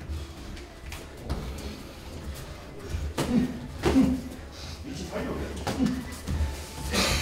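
Boxing gloves thud against pads and bodies in quick bursts.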